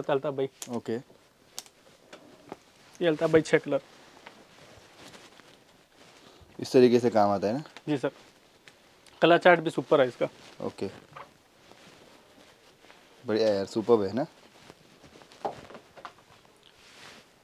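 Clothes rustle as they are handled.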